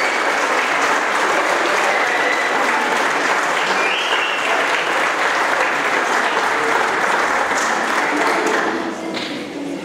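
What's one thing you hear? A large audience applauds loudly in a big hall.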